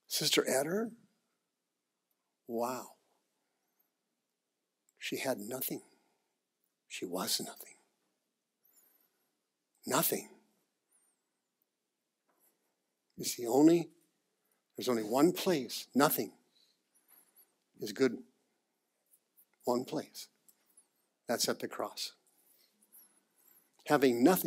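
A man speaks to an audience in short, animated phrases with long pauses between them.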